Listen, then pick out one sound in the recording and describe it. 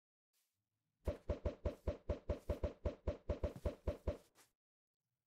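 Blocks are placed in quick succession, each with a soft thud.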